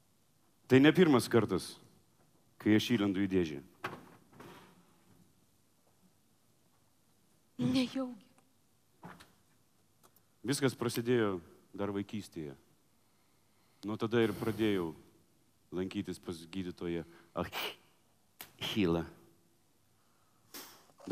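A young woman speaks with feeling through a microphone in a large hall.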